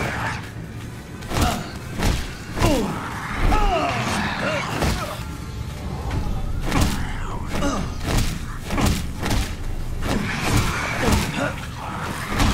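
Fists punch a monster with heavy thuds.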